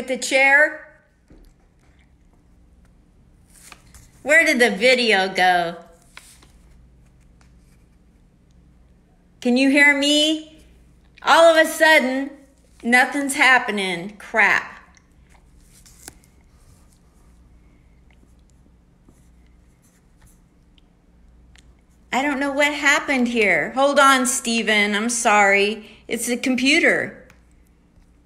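A middle-aged woman talks with animation over an online call.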